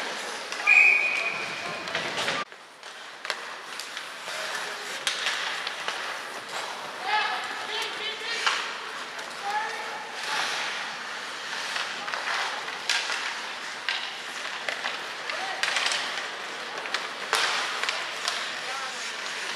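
Hockey sticks clack against a puck in a large echoing arena.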